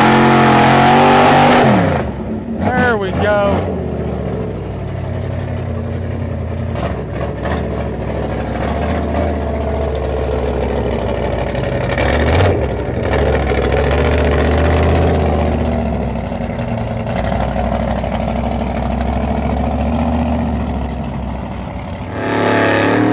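A big truck engine rumbles and revs loudly close by.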